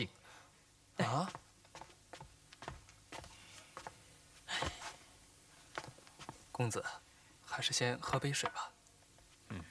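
A second young man answers calmly, close by.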